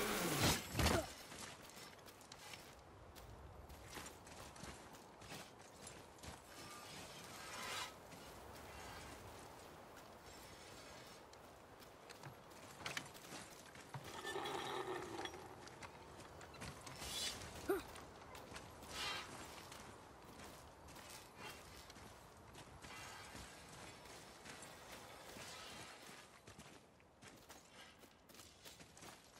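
Heavy footsteps crunch on gravel and stone.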